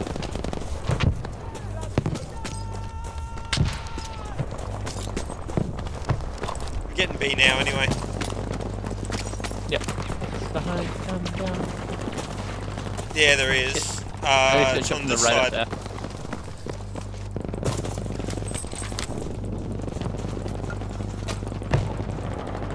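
Rifle shots crack now and then.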